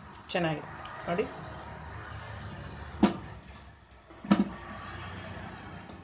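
A knife cuts through soft root vegetable with dull clicks.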